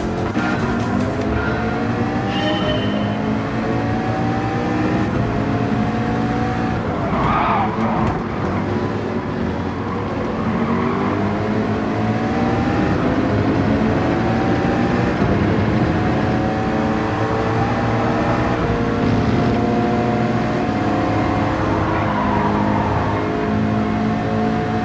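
A racing car engine roars and revs up through the gears.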